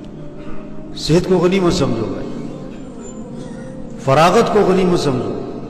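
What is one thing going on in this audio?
A man speaks with emotion through a microphone, with pauses.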